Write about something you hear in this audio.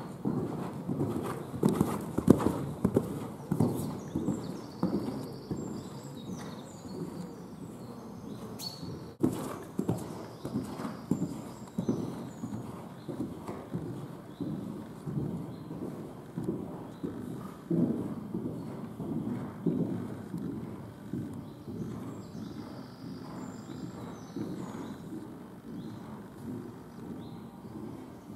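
A horse's hooves thud softly on sand in a rhythmic canter.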